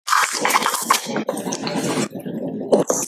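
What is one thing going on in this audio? A plastic candy wrapper crinkles close up.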